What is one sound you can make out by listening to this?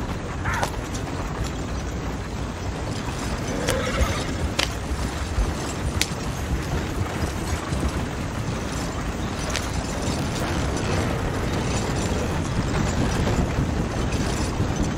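Wooden wagon wheels rumble and creak over a dirt track.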